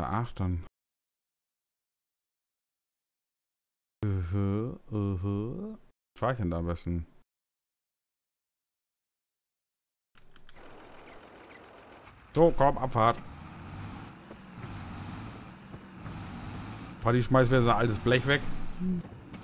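A man talks calmly into a microphone, heard close.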